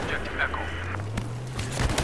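Gunfire cracks in short bursts.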